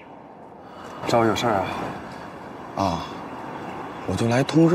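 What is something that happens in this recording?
A young woman speaks nearby outdoors.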